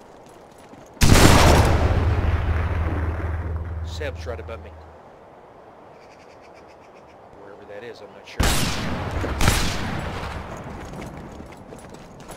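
A rifle fires a loud shot that echoes away across the distance.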